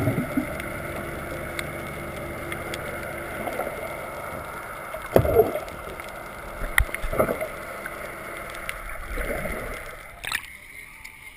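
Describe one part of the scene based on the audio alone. Muffled underwater rumbling and bubbling fills the sound.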